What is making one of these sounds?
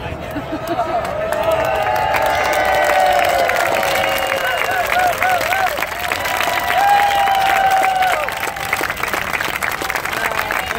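A large crowd cheers and whoops loudly.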